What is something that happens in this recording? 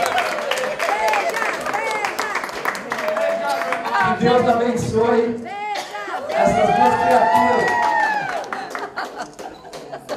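A crowd cheers and shouts loudly nearby.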